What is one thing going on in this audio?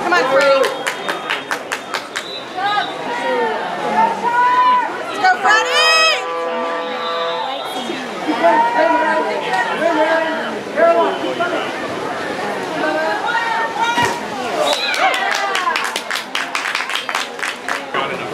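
Swimmers splash and kick through water.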